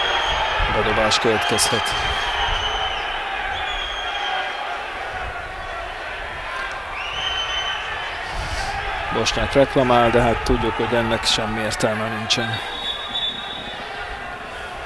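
A crowd murmurs steadily in an open stadium.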